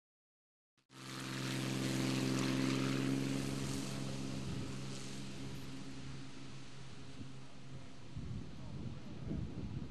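A light plane's engine roars as it takes off.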